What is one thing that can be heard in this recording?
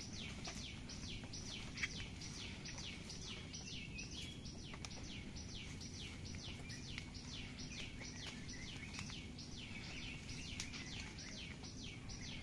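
Leaves rustle as a woman pulls at bushes.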